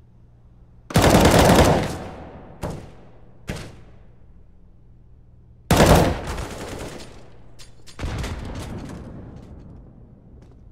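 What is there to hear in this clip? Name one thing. A rifle fires in loud, sudden bursts.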